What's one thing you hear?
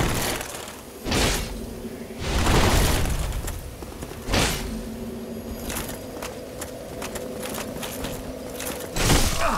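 Swords swing and clash with sharp metallic swooshes.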